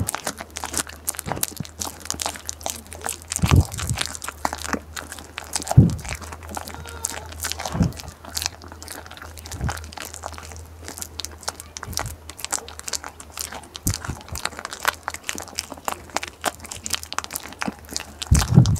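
A goat chews and crunches food close by.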